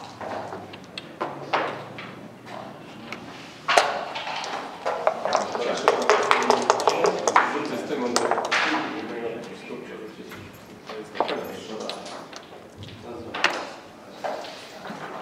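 Game pieces click and clack as they are moved on a wooden board.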